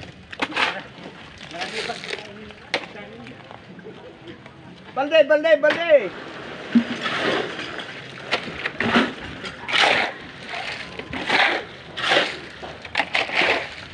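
A shovel scrapes through wet concrete, over and over.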